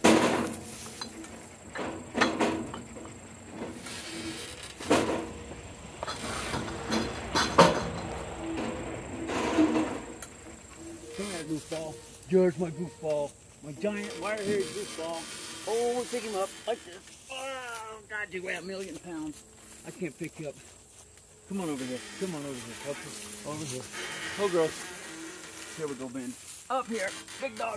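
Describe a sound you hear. Donkeys chew and crunch leaves.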